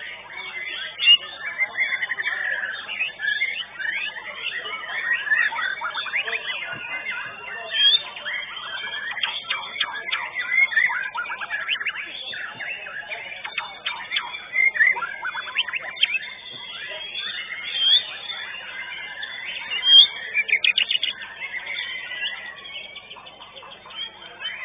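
A songbird sings rapid, chattering trills close by.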